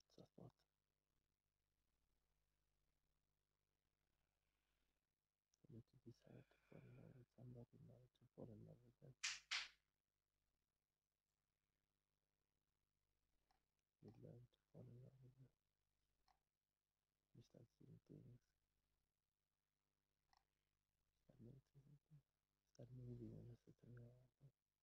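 A man speaks softly nearby in short bursts.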